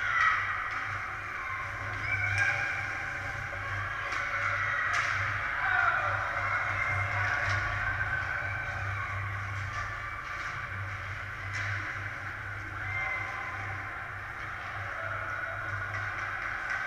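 Skates scrape and hiss across ice in a large echoing hall.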